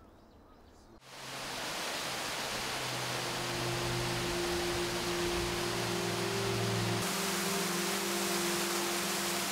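Water rushes and splashes over rocks.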